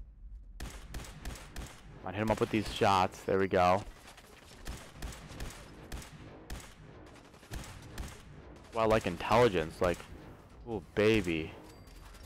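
Rapid gunshots fire in bursts.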